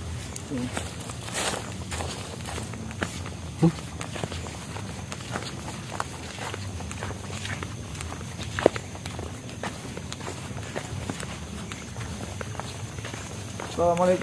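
Footsteps shuffle on a dirt path.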